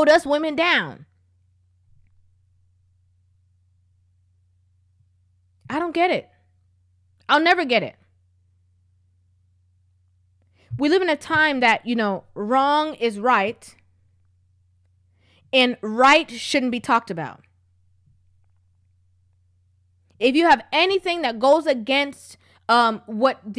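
A young woman speaks calmly and close into a microphone, in short bursts with pauses.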